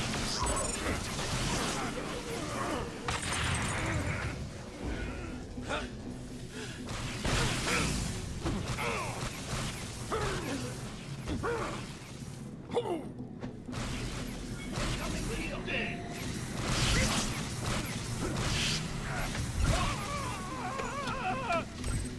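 Energy guns fire in rapid bursts.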